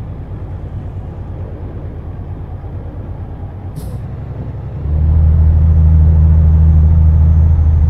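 A truck engine drones low and steadily, growing louder partway through.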